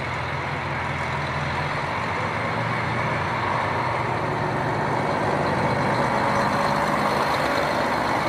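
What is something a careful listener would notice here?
A train rolls slowly past with a steady rumble and hum.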